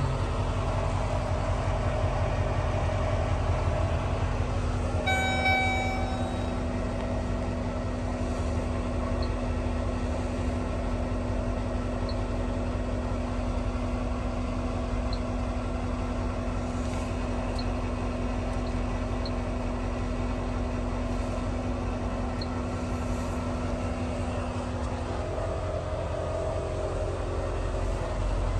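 A vehicle engine idles with a low, steady rumble.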